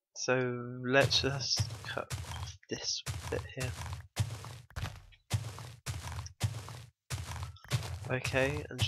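Dirt crunches with quick, repeated digging strokes.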